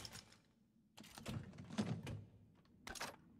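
Metal latches click open on a case.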